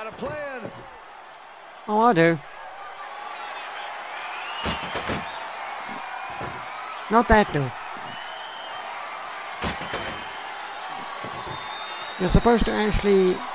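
A wooden table slams down with loud heavy thuds.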